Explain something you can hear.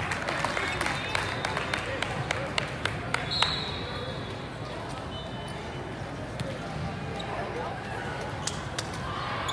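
Volleyballs smack against hands and the floor.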